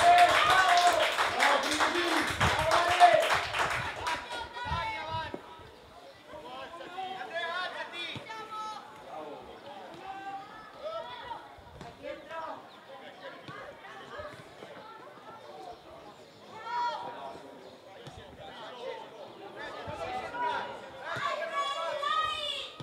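Young male players shout and call to each other across an open field.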